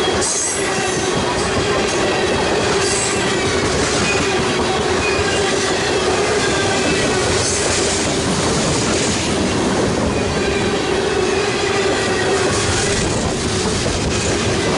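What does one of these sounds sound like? A freight train rumbles past close by, wheels clattering on the rails.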